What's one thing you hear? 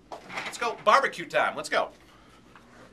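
A man speaks close up with animation.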